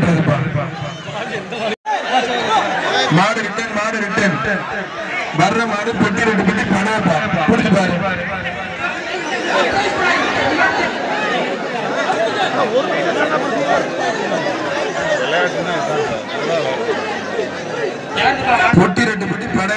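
Many men shout excitedly nearby.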